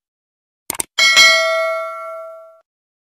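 A bell rings brightly and slowly fades.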